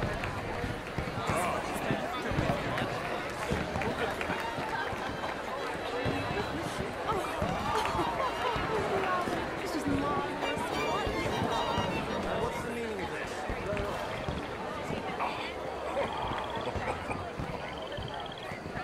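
A crowd of men and women chatter at a party outdoors.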